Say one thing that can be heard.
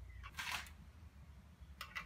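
A wrench ratchets on a bolt.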